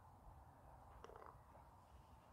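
A golf ball drops into the cup with a soft rattle.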